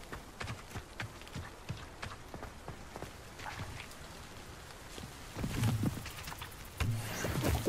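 Keys clack on a keyboard.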